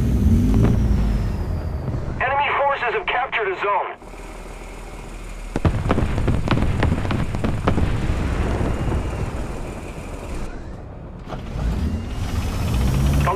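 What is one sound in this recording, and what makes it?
A tank engine rumbles low and steadily.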